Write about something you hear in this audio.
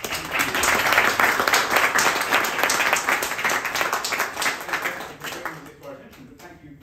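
An audience claps and applauds.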